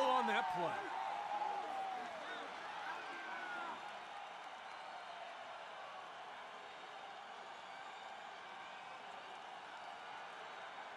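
A large crowd cheers loudly, then settles into a steady murmur.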